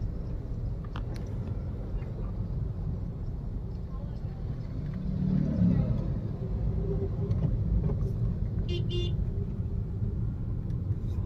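A car engine rumbles steadily from inside a moving car.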